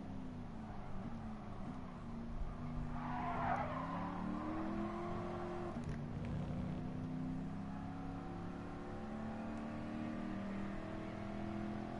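A car engine roars steadily, its pitch rising as it speeds up and dropping at each gear change.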